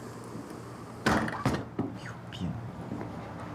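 A young man speaks curtly, close by.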